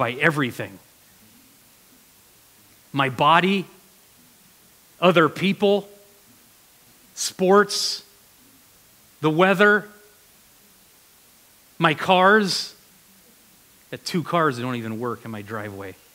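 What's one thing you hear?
A man speaks through a microphone in short bursts with long pauses.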